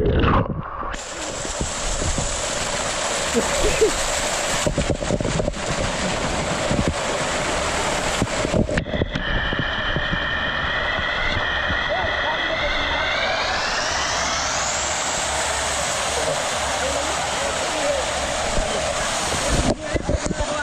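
Water pours and splashes loudly close by.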